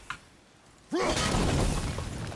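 A burst of flame erupts with a loud whoosh.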